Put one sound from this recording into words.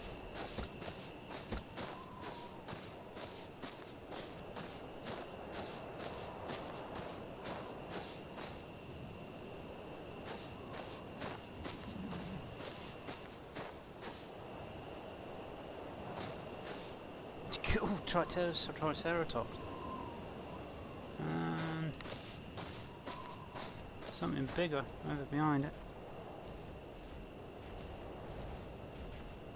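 Footsteps crunch on sand at a steady walking pace.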